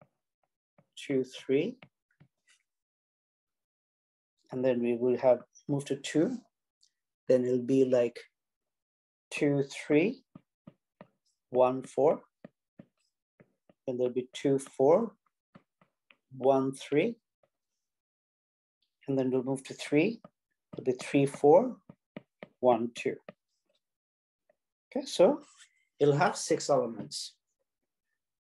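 A man speaks calmly and clearly into a close microphone, in short phrases with pauses.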